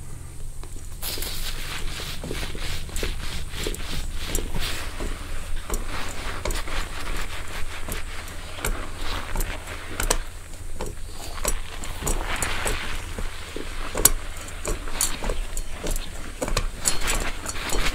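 Wire prongs of a head massager scratch and rustle through hair close to a microphone.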